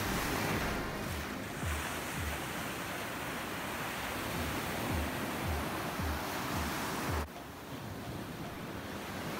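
Waves break and wash up on a beach with a steady rushing roar.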